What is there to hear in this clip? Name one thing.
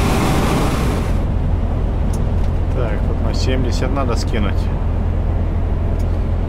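A truck engine hums low and steadily inside the cab.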